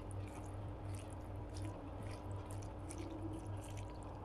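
A woman chews food with soft wet mouth sounds.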